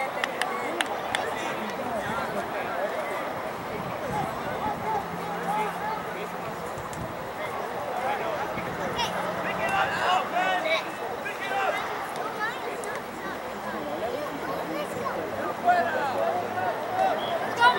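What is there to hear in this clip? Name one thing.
A crowd of spectators chatters and calls out in the distance, outdoors.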